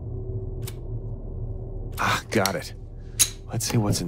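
A padlock snaps open with a metallic clack.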